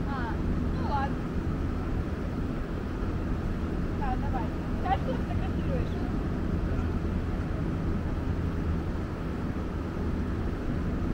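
People chatter faintly in the distance outdoors.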